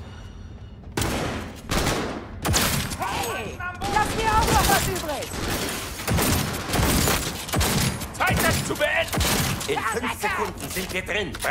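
A pistol fires rapid, loud gunshots.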